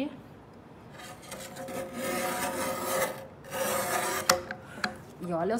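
A tile cutter's wheel scrapes across a tile with a gritty rasp.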